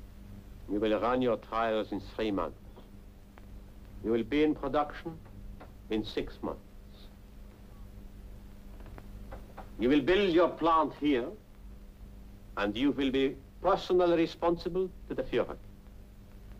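A middle-aged man speaks firmly and loudly.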